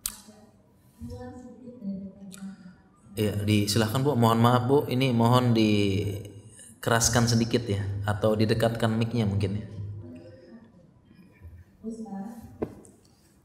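A man speaks calmly and with emphasis into a close microphone.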